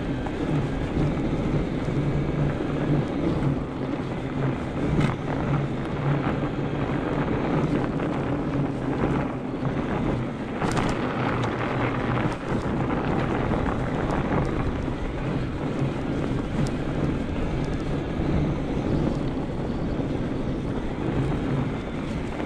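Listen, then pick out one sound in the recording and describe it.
Bicycle tyres crunch and hiss over packed snow.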